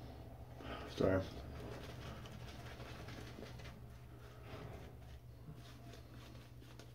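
A shaving brush swishes as it lathers soap on a stubbly cheek.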